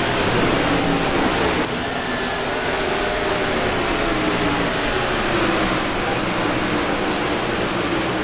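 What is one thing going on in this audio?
Tyres screech as a race car spins out.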